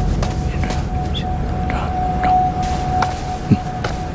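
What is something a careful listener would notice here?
A man whispers softly close by.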